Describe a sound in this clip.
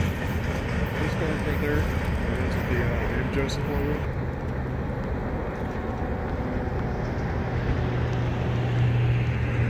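A freight train rumbles along the tracks, moving away.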